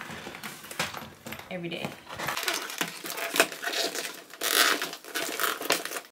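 A plastic pouch crinkles and rustles as it is handled.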